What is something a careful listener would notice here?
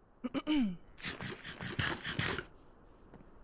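A game character munches on food with quick crunchy bites.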